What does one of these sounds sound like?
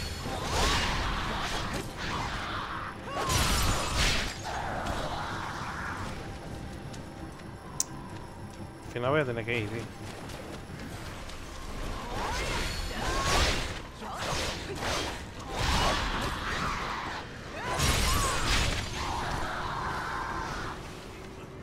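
Flames burst and roar in fiery blasts.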